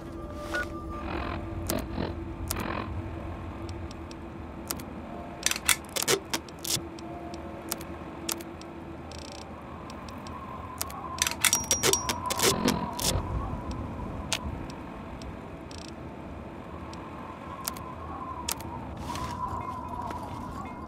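Short mechanical clicks tick again and again.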